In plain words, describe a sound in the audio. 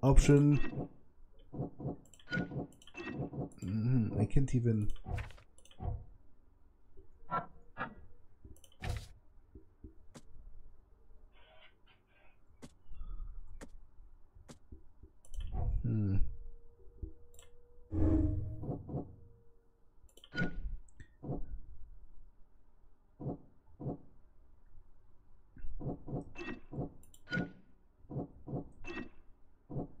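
Short soft clicks and swishes sound as menu choices change.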